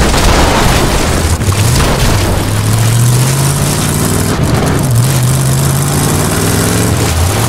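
Tyres crunch over rough dirt.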